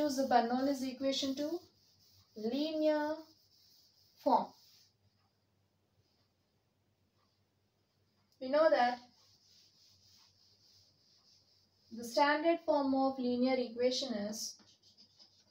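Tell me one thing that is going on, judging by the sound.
A young woman speaks calmly and clearly, in short phrases.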